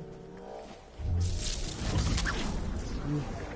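A loud magical whoosh bursts and crackles.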